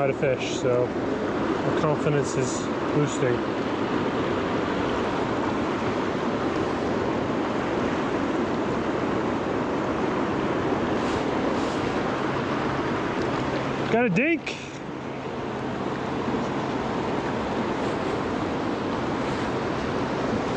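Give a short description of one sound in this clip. A river rushes and gurgles close by.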